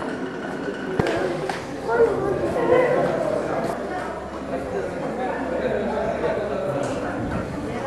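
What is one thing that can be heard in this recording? Men and women talk nearby outdoors.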